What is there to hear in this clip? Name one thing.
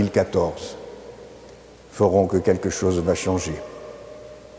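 An elderly man speaks calmly in a large echoing hall.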